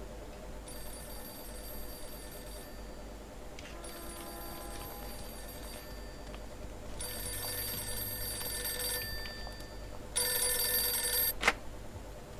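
A telephone rings in repeated bursts.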